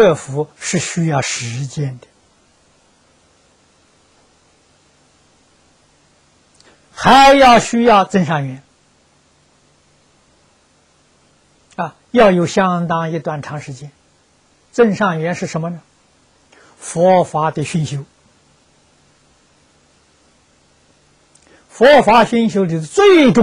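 An elderly man speaks calmly into a microphone in short phrases with long pauses.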